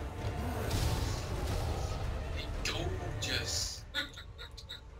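A huge monster growls deeply.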